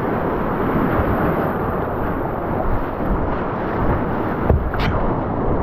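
Fast white water rushes and roars loudly close by.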